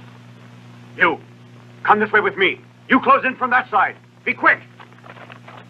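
A man shouts commands.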